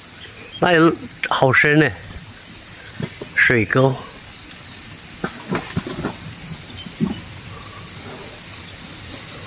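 Cows walk through rustling undergrowth.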